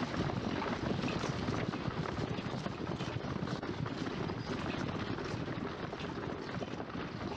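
Many horses gallop, their hooves drumming on a dirt road.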